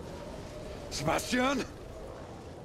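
A man shouts out sharply.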